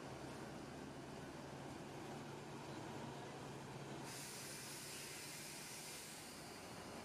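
A bus engine idles with a low steady hum.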